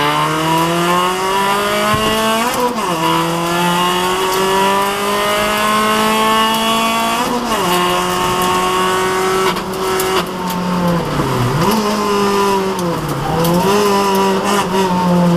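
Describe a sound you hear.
Gravel and stones rattle against the underside of a car.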